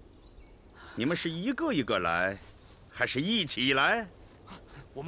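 A man speaks sternly and loudly.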